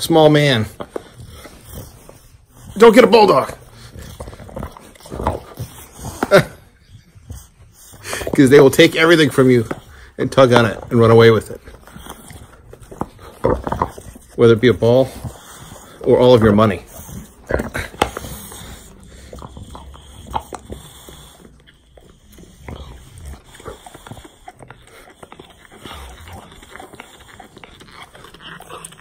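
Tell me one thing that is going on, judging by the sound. A dog snuffles and breathes heavily close by.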